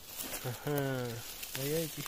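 A knife cuts through a mushroom stem.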